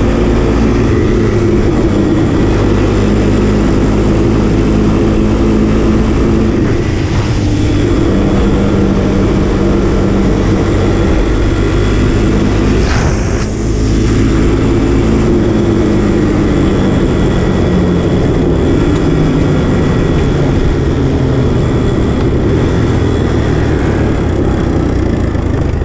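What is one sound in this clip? A small quad bike engine drones loudly up close, its pitch rising and falling.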